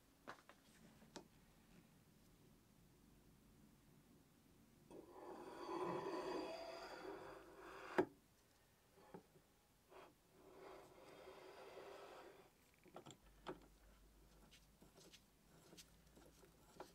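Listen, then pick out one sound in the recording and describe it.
Metal parts clink and click under a hand tool.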